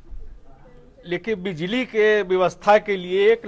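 A man speaks animatedly through a microphone.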